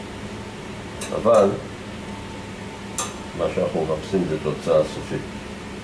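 Metal tongs click against a metal rack.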